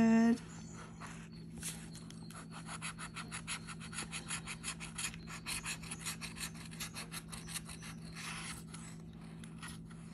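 A tool scrapes rapidly across a scratch card.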